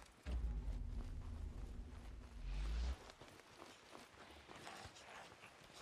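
Footsteps crunch on dry ground and grass.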